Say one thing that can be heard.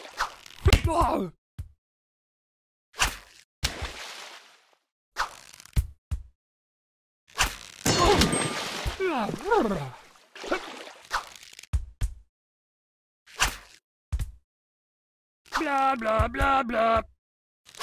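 A ball thuds against a target.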